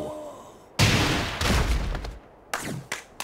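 A heavy punch lands with a fiery blast.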